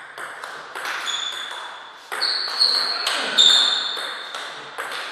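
Shoes squeak sharply on the floor.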